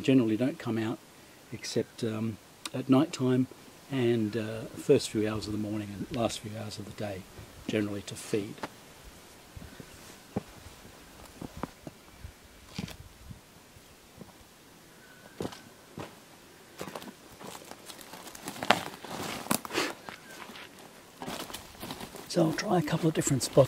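A man talks calmly and close by, outdoors.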